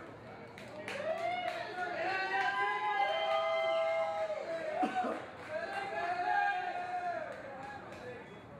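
A group of young men shout a loud team chant outdoors, some distance off.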